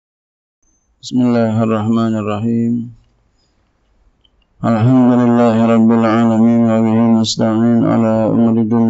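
A man recites in a melodic, chanting voice into a microphone.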